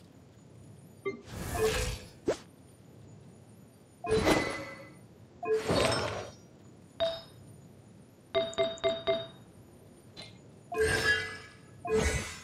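Short menu whooshes and chimes sound as options change.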